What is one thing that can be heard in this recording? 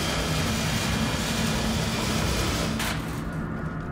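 A laser torch hisses and crackles as it burns through metal.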